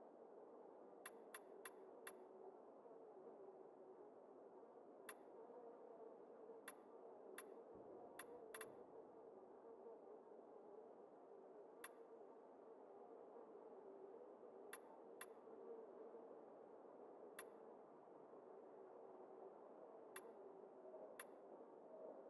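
Short, sharp menu clicks tick now and then as selections change.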